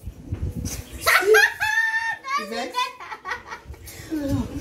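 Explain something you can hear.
A young girl laughs loudly.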